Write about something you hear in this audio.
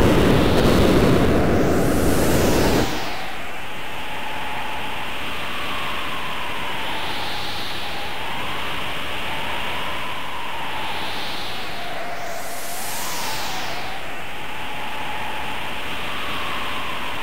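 Wind howls and whooshes in rising and falling gusts.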